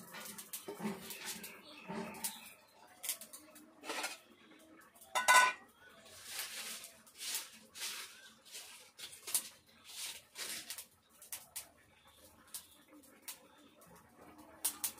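Batter sizzles and hisses in a hot pan.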